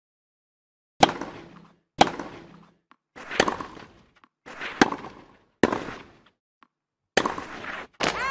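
A tennis racket strikes a ball back and forth.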